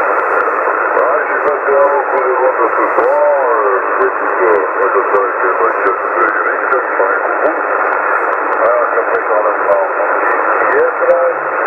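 A man's garbled voice speaks through a radio loudspeaker.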